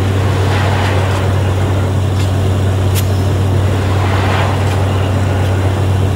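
A shovel scrapes on soil.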